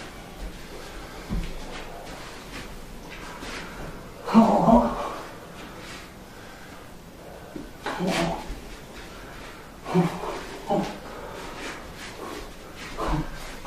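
Feet thud and shuffle on a mat.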